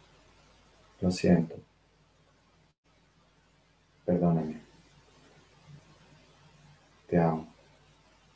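A young man speaks calmly in short phrases with long pauses.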